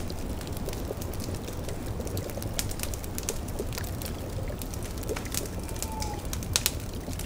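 A fire crackles and pops steadily.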